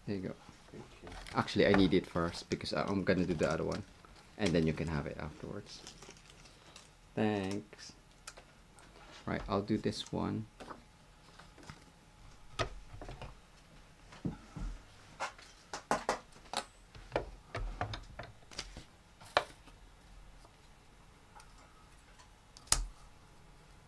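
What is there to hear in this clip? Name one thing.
Sheets of paper and card rustle and tap as hands handle them.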